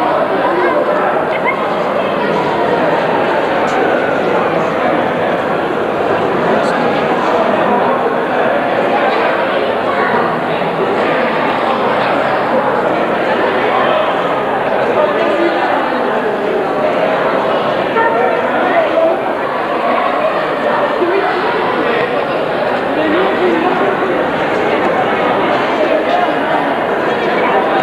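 A crowd of men and women chatter together throughout, in a room with some echo.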